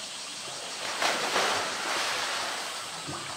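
Water splashes loudly as an animal thrashes in it.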